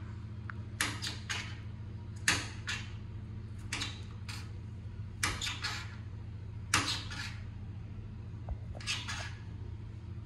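A knife chops leaves on a cutting board with quick, light taps.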